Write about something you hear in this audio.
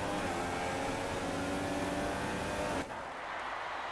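A racing car engine whines loudly at high revs.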